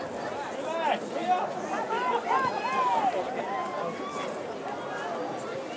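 Young men shout to one another across an open field outdoors.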